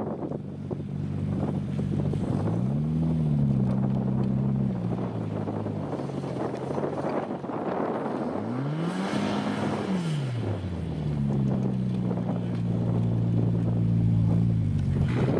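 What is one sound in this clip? Tyres churn and spin on wet grass.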